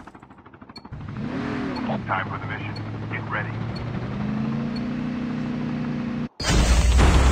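A vehicle engine hums and revs as it drives.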